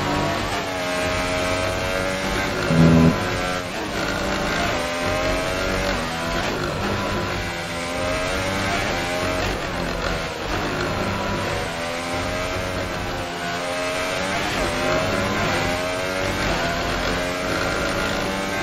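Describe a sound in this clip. A turbocharged V6 Formula One car engine screams as it accelerates and shifts up through the gears.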